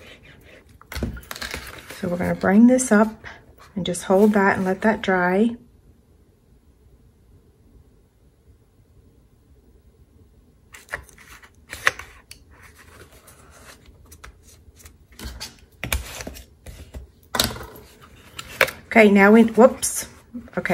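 Paper rustles and crinkles as hands fold and handle it.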